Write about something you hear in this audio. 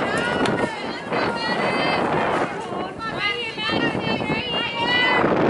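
Young women shout and cheer loudly outdoors.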